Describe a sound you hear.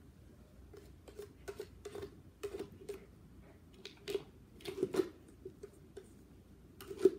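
A dog noses and knocks a plastic treat toy about.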